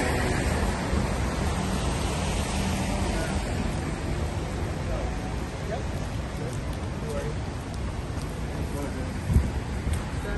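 Footsteps scuff on wet pavement.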